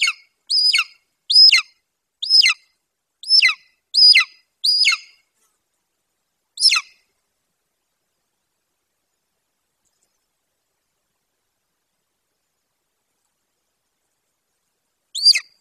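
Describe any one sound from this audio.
An eagle gives a series of shrill, high calls, close by.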